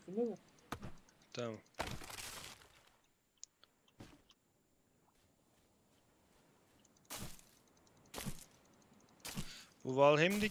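Sharp chopping knocks strike a tree trunk.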